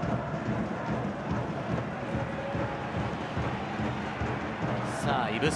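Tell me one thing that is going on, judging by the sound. A large stadium crowd cheers and chants steadily outdoors.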